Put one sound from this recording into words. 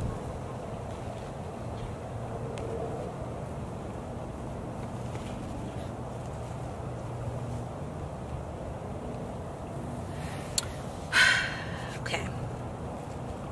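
Cards are slid and tapped softly on a cloth surface.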